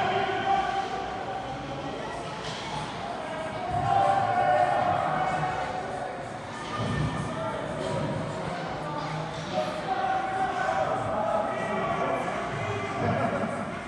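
Ice hockey skates scrape across the ice in an echoing indoor rink.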